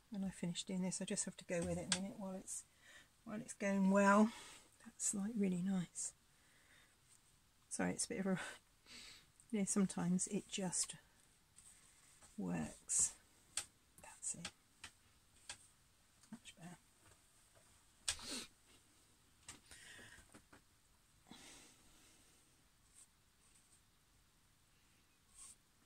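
A brush dabs and strokes softly on a canvas.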